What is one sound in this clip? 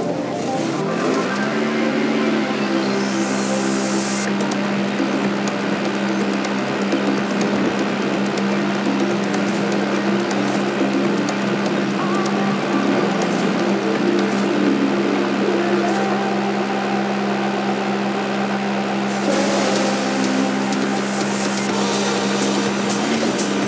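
A buggy's engine roars steadily at high revs.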